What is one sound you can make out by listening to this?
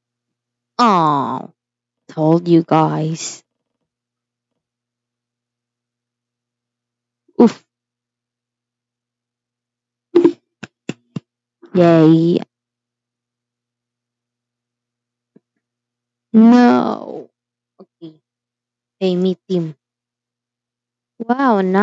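A young girl talks with animation into a close microphone, in short bursts with pauses.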